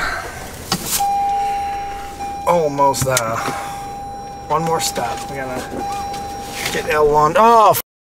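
A car's warning chime sounds steadily.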